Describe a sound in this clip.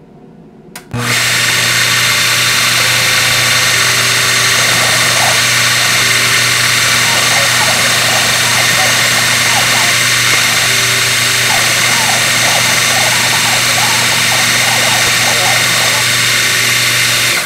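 A milling machine whirs steadily as its cutter engraves metal.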